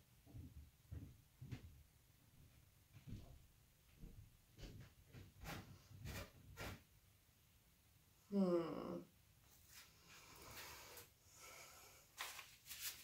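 Rubber gloves squeak and rustle as hands wipe at something wet.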